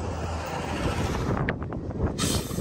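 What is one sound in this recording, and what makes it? A bus engine rumbles as the bus passes.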